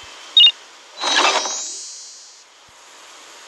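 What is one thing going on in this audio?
A bright, sparkling chime rings out.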